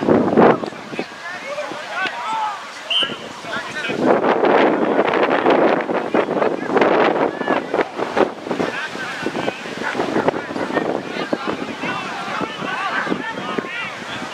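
A crowd of young women and men shouts and cheers outdoors.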